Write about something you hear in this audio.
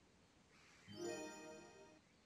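A bright game chime rings as an upgrade completes.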